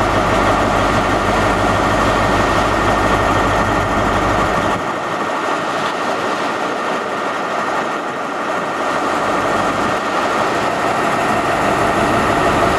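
A diesel train engine drones loudly and steadily close by.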